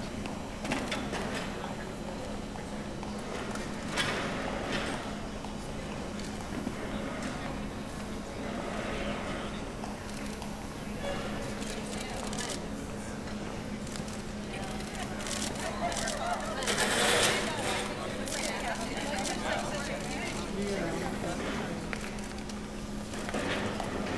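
Women and a man talk quietly nearby in a large echoing hall.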